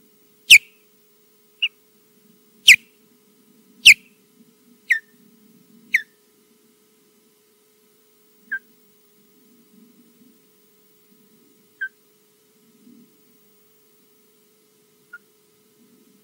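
A bird of prey calls with sharp, piercing chirps, loud and quick at first, then fainter and further apart.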